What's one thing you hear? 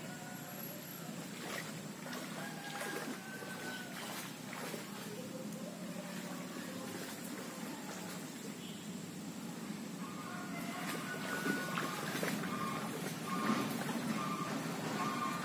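A shallow stream trickles steadily.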